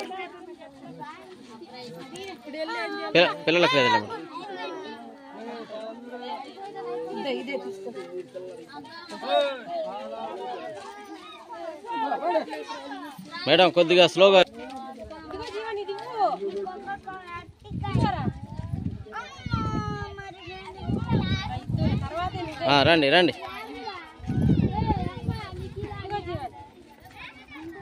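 A crowd of women and men chatter outdoors.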